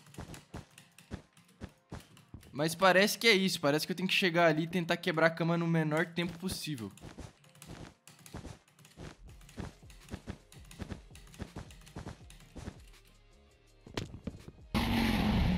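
Quick soft clicks of blocks being placed tap in a rapid rhythm.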